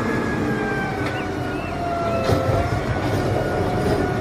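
Trash thuds and clatters into a garbage truck.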